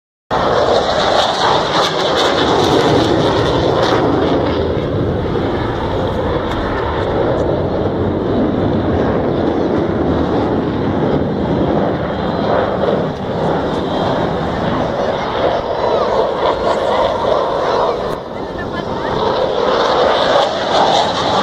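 A crowd murmurs and chatters nearby, outdoors.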